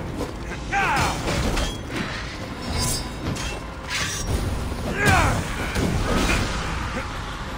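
Gruff male fighters grunt and shout in battle.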